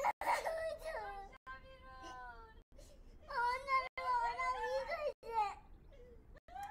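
A young girl sobs and wails into a telephone, close by.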